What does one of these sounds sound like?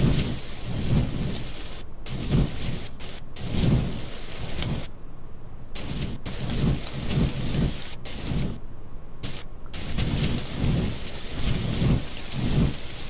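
Large wings flap in a steady rhythm.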